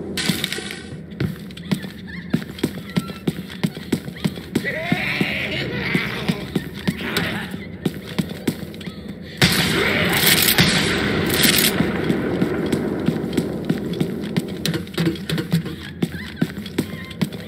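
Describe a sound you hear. Footsteps thud quickly and evenly on pavement.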